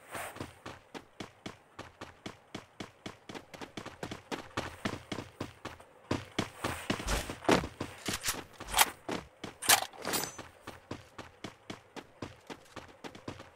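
Footsteps of a running game character thud in quick succession.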